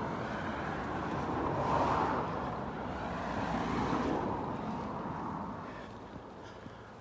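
Wind gusts loudly across the microphone outdoors, then dies down.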